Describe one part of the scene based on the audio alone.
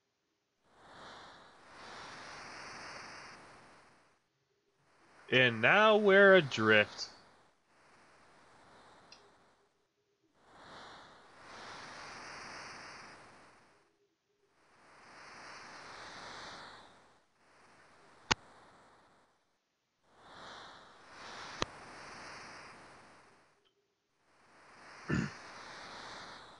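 Ocean waves swell and wash in slow repeating surges.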